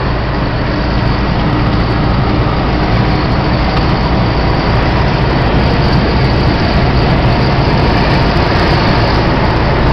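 A car drives at speed on a highway, with road and wind noise roaring from inside.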